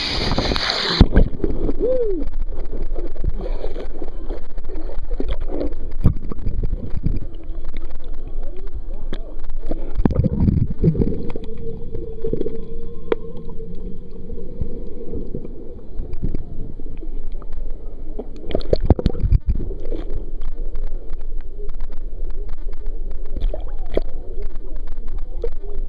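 Water gurgles and rumbles underwater.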